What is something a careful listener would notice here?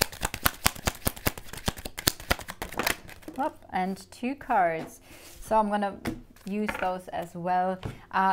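A card slaps softly onto a wooden tabletop.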